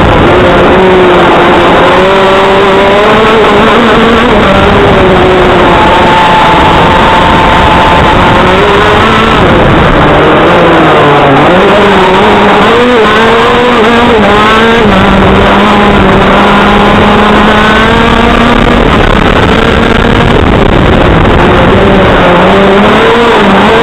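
A small kart engine revs loudly, rising and falling in pitch through the turns.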